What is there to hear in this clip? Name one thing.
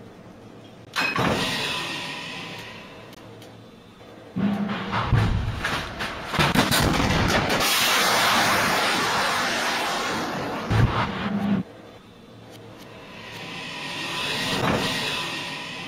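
A heavy metal hatch grinds and swings open with a hissing rush.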